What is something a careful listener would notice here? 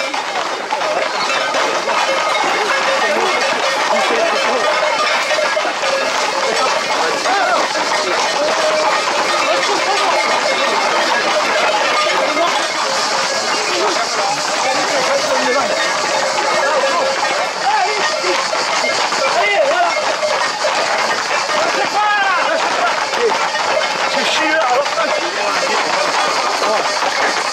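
Horses' hooves clatter on a paved road.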